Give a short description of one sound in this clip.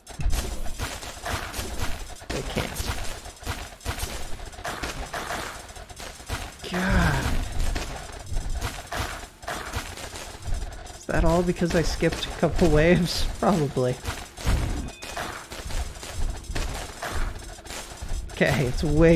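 Magic towers fire rapid crackling bursts.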